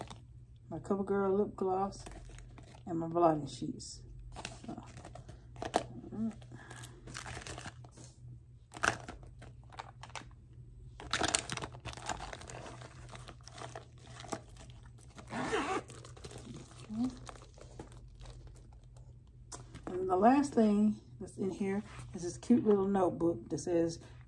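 Plastic pouches crinkle and rustle as hands handle them.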